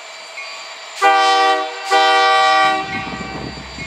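A train horn blares loudly in two long blasts.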